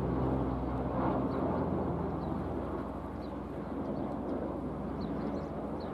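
A transport plane's engines drone overhead.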